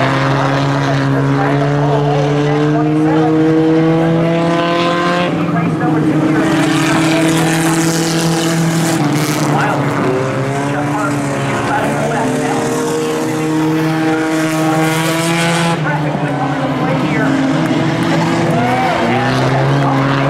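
Several race car engines roar and rev.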